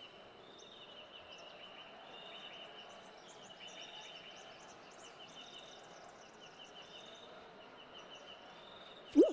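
Light, cheerful game music plays with bright chirping notes.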